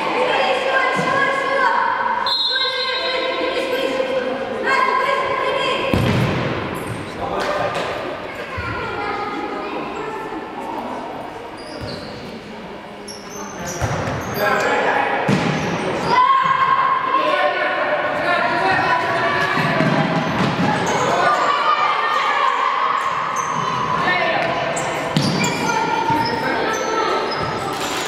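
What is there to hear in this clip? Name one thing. Women players shout to each other in an echoing indoor hall.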